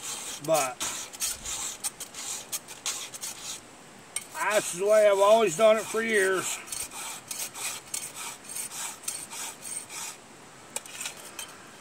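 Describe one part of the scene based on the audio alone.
A file rasps in quick, repeated strokes against a chainsaw chain.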